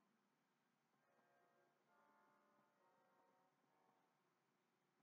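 Faint video game music chimes from a television speaker.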